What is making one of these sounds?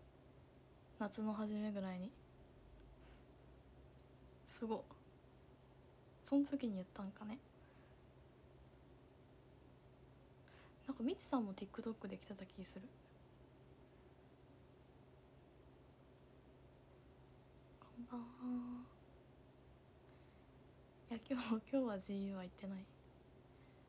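A young woman speaks softly in short bursts, close up.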